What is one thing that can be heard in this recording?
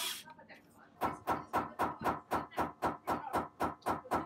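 A hammer taps repeatedly and steadily on metal.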